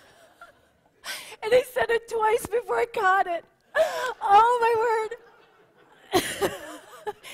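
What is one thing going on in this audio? A woman speaks with animation into a microphone, heard through a loudspeaker in a hall.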